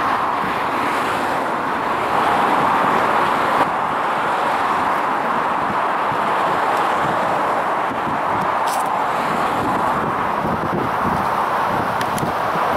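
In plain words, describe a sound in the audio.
Strong wind gusts roar into the microphone outdoors.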